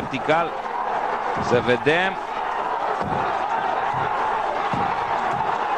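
A crowd cheers and murmurs outdoors.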